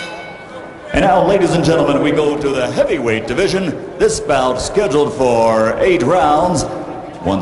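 A man announces loudly and drawn-out through a loudspeaker.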